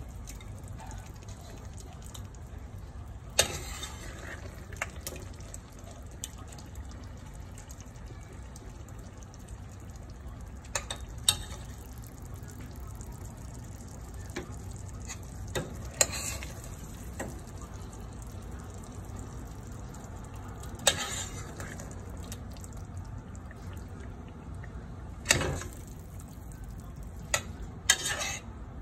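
A stew simmers and bubbles in a pot.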